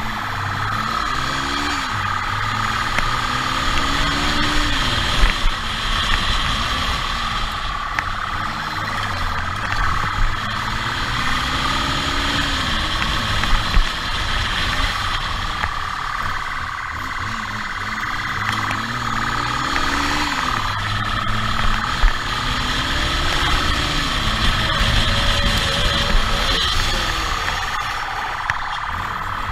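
A motorcycle engine hums steadily and revs up and down as it rides.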